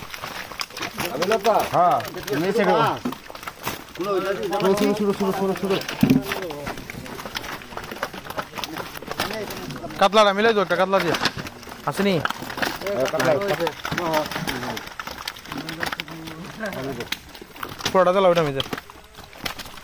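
A man talks nearby in a lively way.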